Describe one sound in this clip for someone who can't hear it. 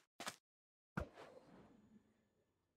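An object is thrown with a whoosh.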